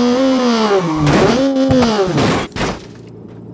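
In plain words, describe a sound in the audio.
Tyres screech as a car slides sideways.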